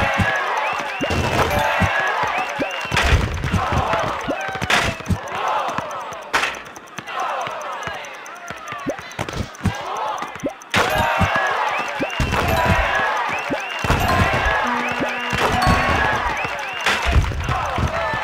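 A basketball thuds and bounces on a hard court.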